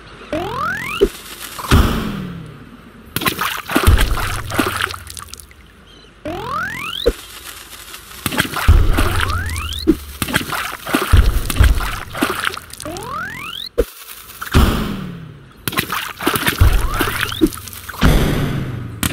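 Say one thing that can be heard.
Targets pop and burst with cartoon sound effects.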